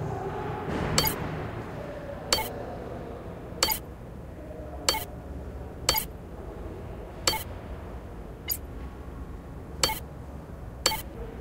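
A short electronic click sounds each time a menu choice changes, about once every second or so.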